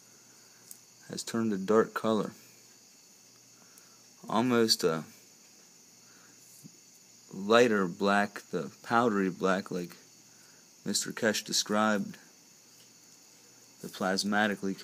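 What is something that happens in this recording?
Pliers click softly against a thin wire.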